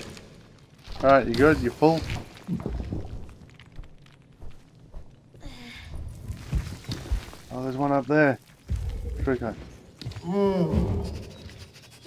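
A large creature lets out high, warbling cries.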